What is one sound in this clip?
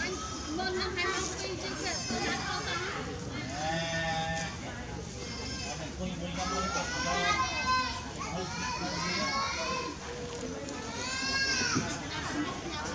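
A baby monkey squeaks in short, high chirps close by.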